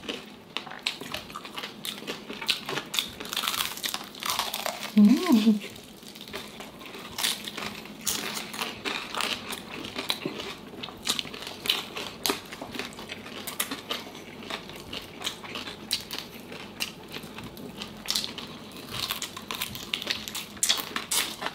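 Crispy fried food crunches loudly between teeth close to a microphone.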